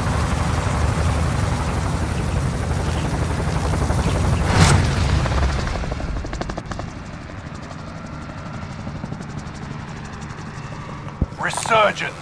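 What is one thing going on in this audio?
Helicopter rotors thump and roar loudly overhead.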